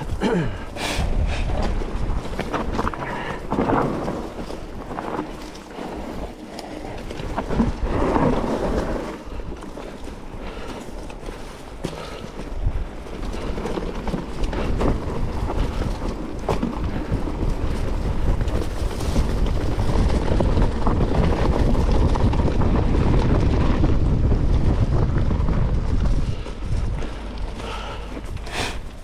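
A bicycle's frame rattles and clatters over bumps.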